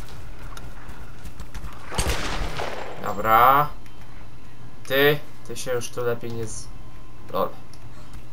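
Gunshots ring out from a pistol.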